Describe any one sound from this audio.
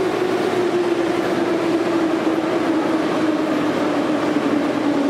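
Many footsteps shuffle on a hard floor.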